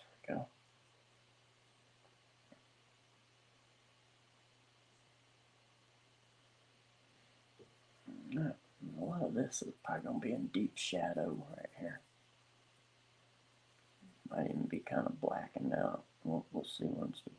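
A felt pen scratches softly on paper.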